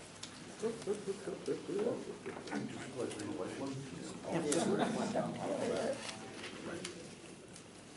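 An older man talks quietly to another man nearby.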